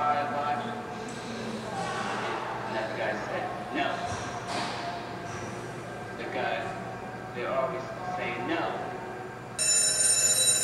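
A man talks through a television loudspeaker.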